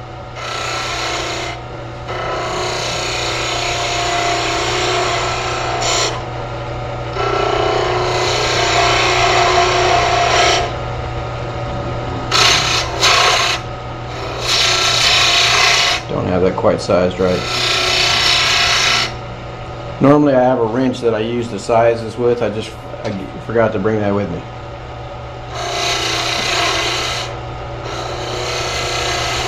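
A wood lathe motor hums steadily.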